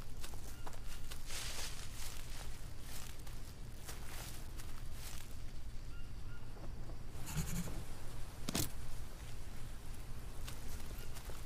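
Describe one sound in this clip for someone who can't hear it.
Leafy plants rustle and swish as they are brushed aside.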